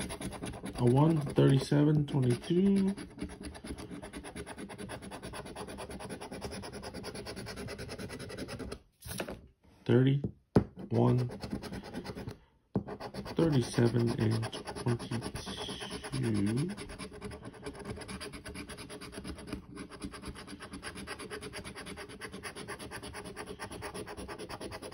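A coin scratches rapidly across a paper card.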